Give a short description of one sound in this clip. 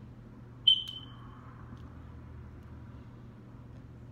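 A young woman chews food.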